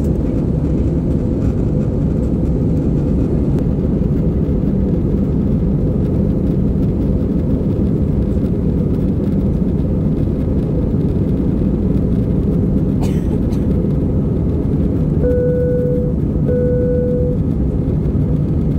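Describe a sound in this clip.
A plane's engines roar steadily in the cabin.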